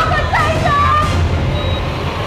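A young woman gasps in shock.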